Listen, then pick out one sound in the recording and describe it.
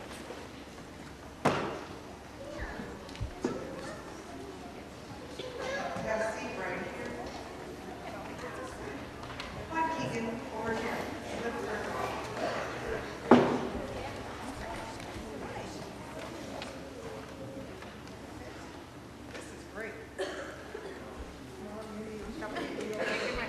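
Children chatter and murmur nearby.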